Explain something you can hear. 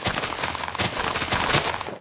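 A block of earth crunches as it is dug.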